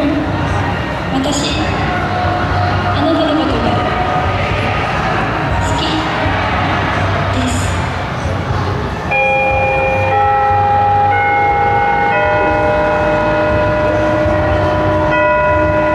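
A large outdoor crowd murmurs and chatters.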